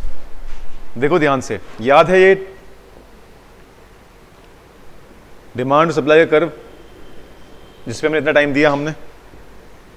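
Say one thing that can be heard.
A man speaks calmly and explains, close to a microphone.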